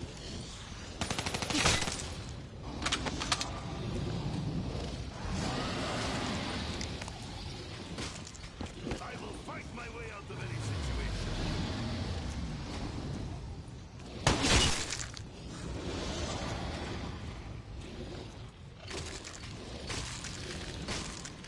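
Gunfire crackles in short, rapid bursts.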